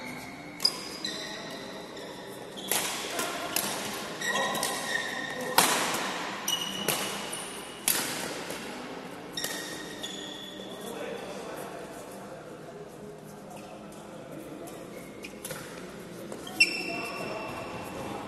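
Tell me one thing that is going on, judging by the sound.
Sneakers squeak on a court floor.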